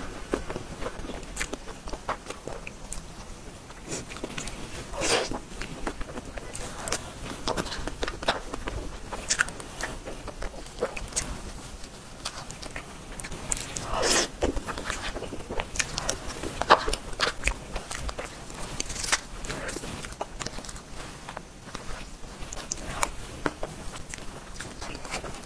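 A spoon scrapes and clinks against a paper tub.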